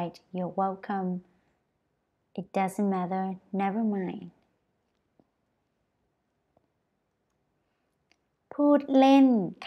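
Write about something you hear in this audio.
A young woman speaks clearly and slowly into a close microphone, pausing between phrases.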